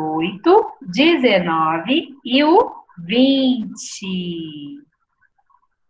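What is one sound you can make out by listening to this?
A young woman speaks with animation close to a microphone, heard over an online call.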